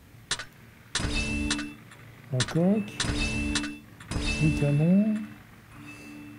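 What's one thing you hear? A game's upgrade effects whoosh and chime in short bursts.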